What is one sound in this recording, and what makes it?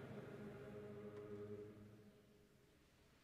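A young choir sings together in a large echoing hall, then falls quiet.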